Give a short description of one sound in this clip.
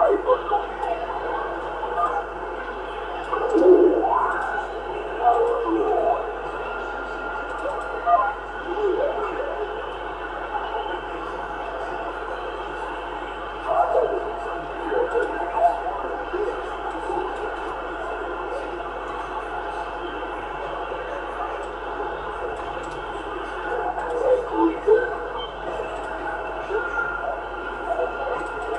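Garbled warbling signals come in bursts from a radio receiver.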